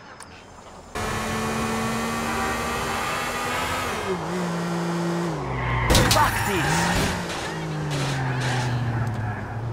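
A car engine roars and shifts through gears as the car accelerates.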